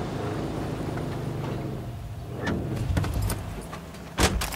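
A car engine idles and rumbles.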